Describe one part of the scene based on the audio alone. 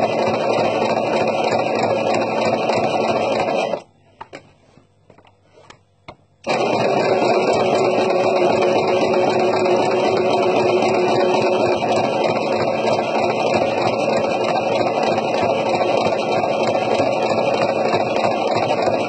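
A sewing machine whirs steadily as it stitches, stopping briefly.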